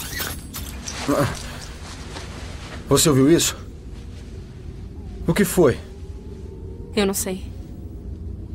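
A young man speaks in a tense, shaky voice close by.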